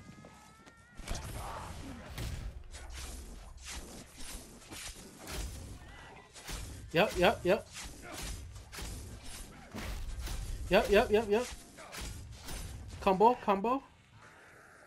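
A heavy weapon thuds repeatedly against a body.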